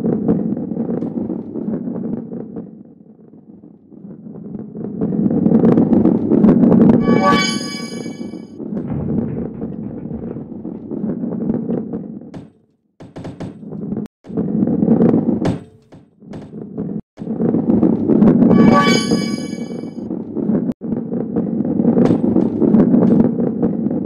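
A heavy ball rolls along a wooden track with a low rumble.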